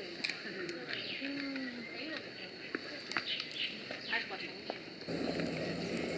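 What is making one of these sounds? A panda crunches and chews bamboo up close.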